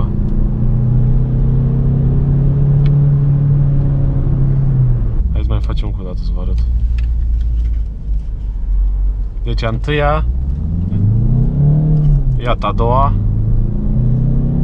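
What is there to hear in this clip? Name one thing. A car engine hums steadily, its pitch rising and falling as the car drives.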